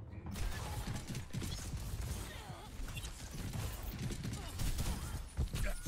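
Gunfire from a video game rattles in quick bursts.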